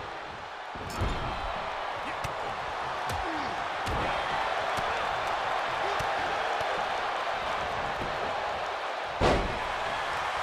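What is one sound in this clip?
Punches land with dull thumps.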